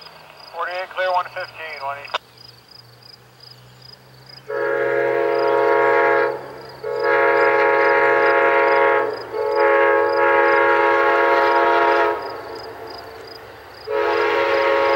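A railway crossing bell dings steadily.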